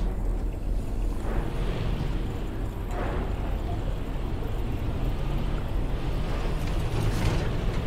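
A truck engine rumbles as the truck drives along.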